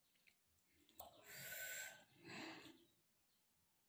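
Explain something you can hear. A woman breathes out heavily after drinking.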